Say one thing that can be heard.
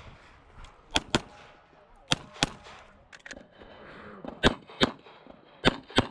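A pistol fires sharp shots in quick pairs outdoors.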